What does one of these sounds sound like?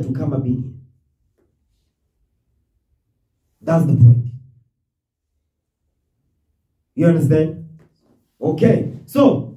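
A man speaks slowly and calmly into a close microphone, with long pauses.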